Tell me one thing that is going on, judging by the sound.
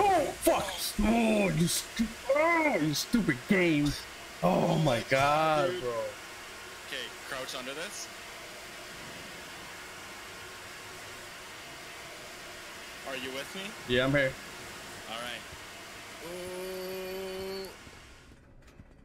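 Steam hisses from a leaking pipe.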